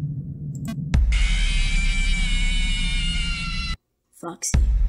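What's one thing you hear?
A harsh, distorted electronic screech blares.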